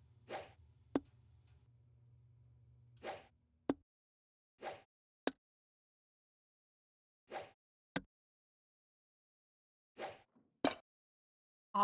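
Darts thud sharply into a dartboard.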